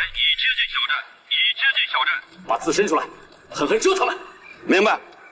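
A middle-aged man speaks firmly into a telephone, close by.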